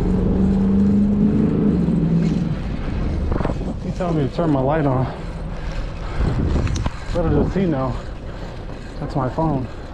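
Bicycle tyres hum on a paved road.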